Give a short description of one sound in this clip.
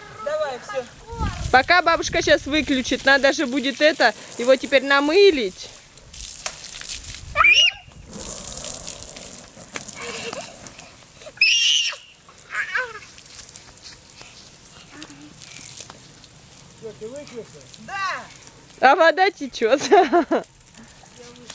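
Young children shout and squeal playfully close by.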